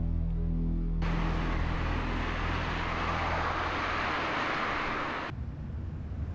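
A car drives up on the road.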